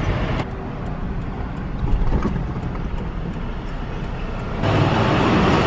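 A car engine idles with a low rumble inside the car.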